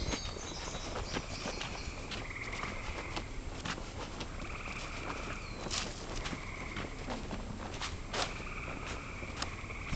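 Wind buffets the microphone while riding.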